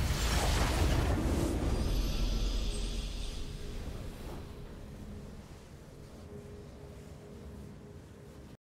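A triumphant victory fanfare plays and slowly fades.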